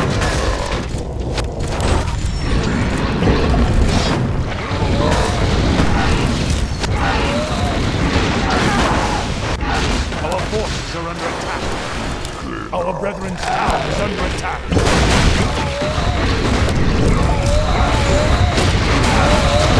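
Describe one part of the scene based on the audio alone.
Explosions boom and crackle in a game battle.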